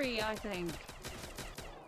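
A young man speaks through a headset microphone.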